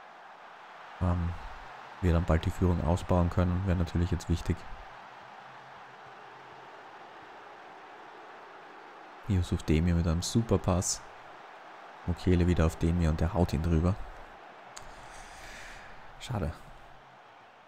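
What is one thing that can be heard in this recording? A man speaks with animation close to a microphone, in short bursts.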